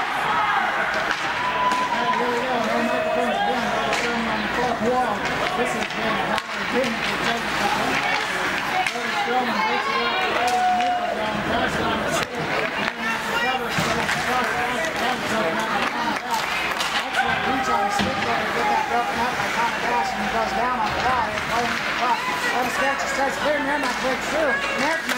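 A crowd of spectators murmurs and chatters in a large echoing rink.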